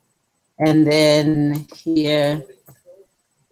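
A man speaks loudly through an online call.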